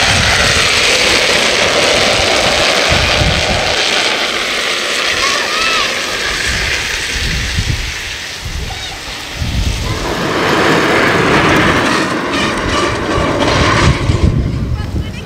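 Small plastic wheels rumble and scrape along asphalt close by.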